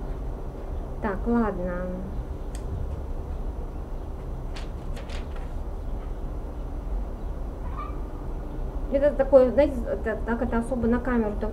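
A woman reads aloud calmly, close by.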